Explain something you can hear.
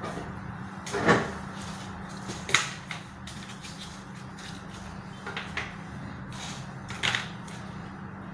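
Small objects clatter and knock on a table.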